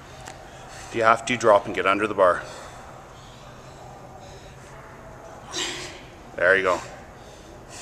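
A young woman grunts and exhales with effort in an echoing hall.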